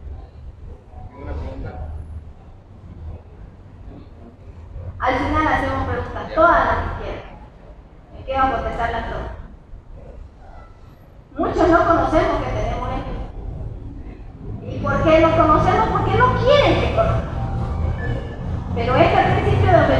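A woman speaks with animation through a microphone and loudspeaker in a large echoing space.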